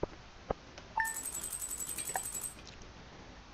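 Quick electronic ticks chime rapidly as a game tally counts up.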